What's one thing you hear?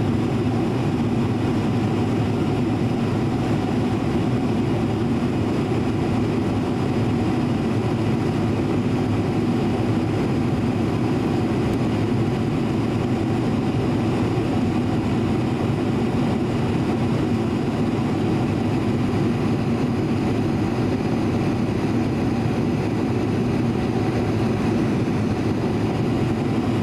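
A jet engine roars steadily inside an airplane cabin.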